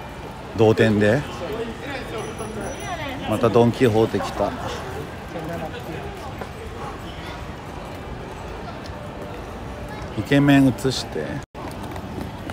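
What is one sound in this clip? A crowd murmurs along a busy street outdoors.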